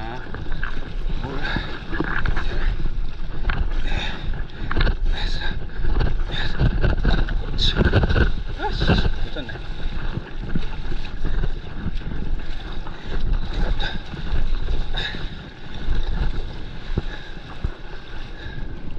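Water splashes and rushes against a board as it moves.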